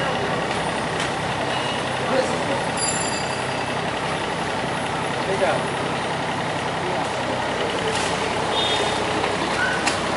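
An excavator bucket scrapes and drops wet mud.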